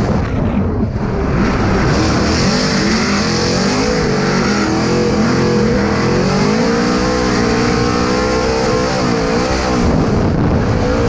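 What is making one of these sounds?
Tyres screech loudly as a nearby car drifts alongside.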